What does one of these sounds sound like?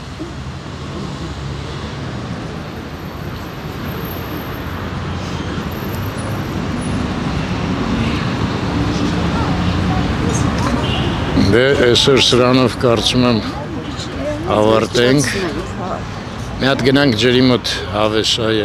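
A mixed crowd of men and women murmurs in the background outdoors.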